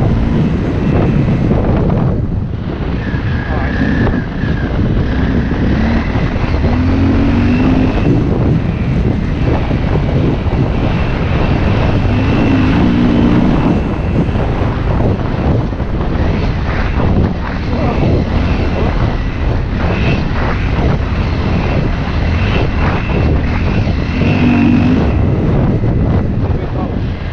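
A dirt bike engine revs and drones steadily up close.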